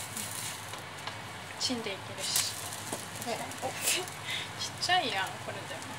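A spatula scrapes against a pan.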